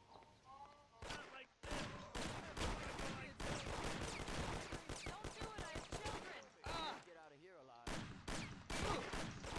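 Shotgun blasts boom repeatedly.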